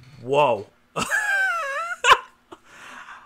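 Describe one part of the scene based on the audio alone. A man laughs loudly.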